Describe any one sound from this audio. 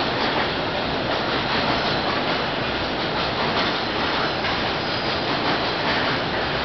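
A long freight train rumbles and clatters steadily along the tracks.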